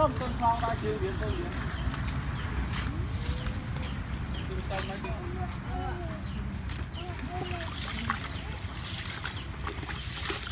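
Hands swish and stir grain in a bucket of water.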